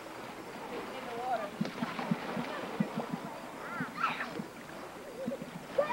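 A child splashes into water.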